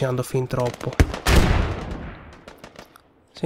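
A heavy explosion booms nearby.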